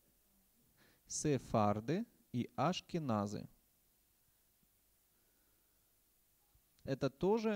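A man speaks calmly into a microphone, pausing between phrases.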